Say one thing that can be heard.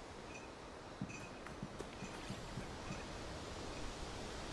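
Footsteps tread softly on grass and dirt.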